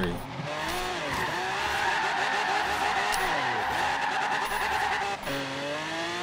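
Tyres screech in a long skid.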